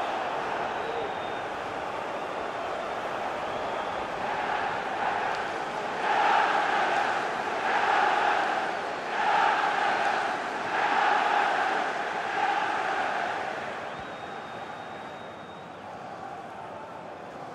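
A large stadium crowd roars and chants steadily, swelling in waves.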